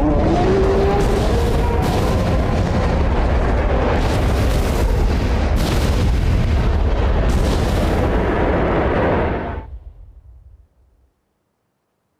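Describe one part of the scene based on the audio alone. A large fiery explosion rumbles loudly and slowly dies away.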